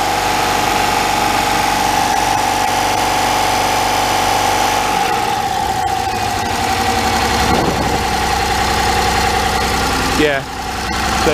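A car engine idles steadily close by, its pitch shifting now and then.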